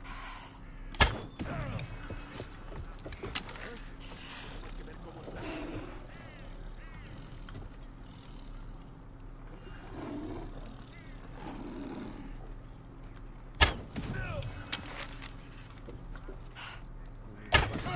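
A bow string snaps sharply as an arrow is shot.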